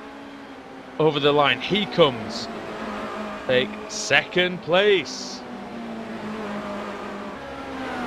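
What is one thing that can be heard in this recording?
Racing car engines whine at high revs.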